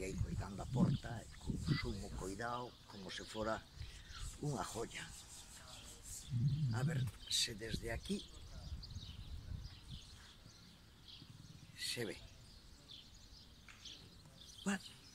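A middle-aged man talks with animation close by, outdoors.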